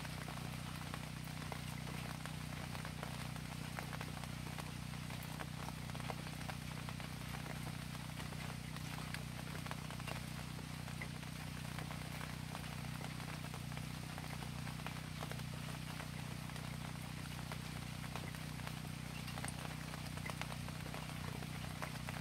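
Steady rain patters on a wooden deck and plants outdoors.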